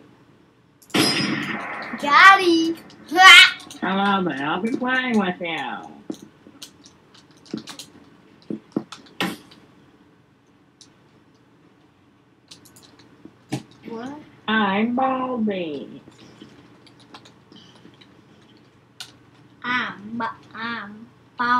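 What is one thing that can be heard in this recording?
A young boy talks excitedly close to a microphone.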